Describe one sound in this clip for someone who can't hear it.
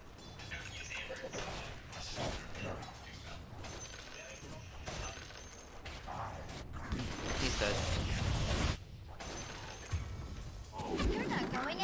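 Weapons clash with quick blows.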